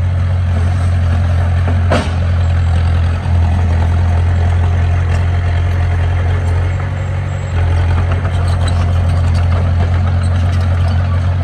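A bulldozer's diesel engine rumbles steadily close by.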